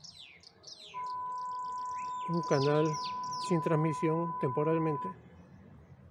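A steady high test tone beeps from a television loudspeaker.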